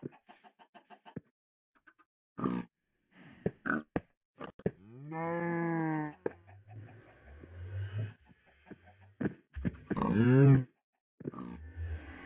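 Pigs grunt.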